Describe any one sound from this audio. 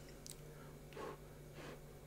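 A young man slurps food loudly.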